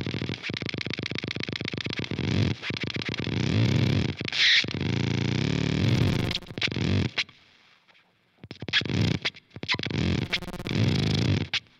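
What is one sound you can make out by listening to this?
An electric guitar plays a rapid, pulsing pattern through effects, pausing briefly before starting again.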